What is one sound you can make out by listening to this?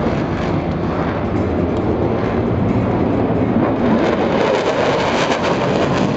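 A pyrotechnic blast booms nearby.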